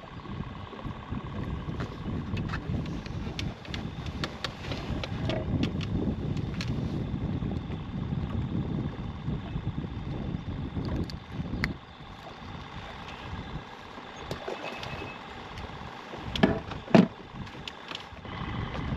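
Small clicks and rustles come from hands handling fishing gear close by.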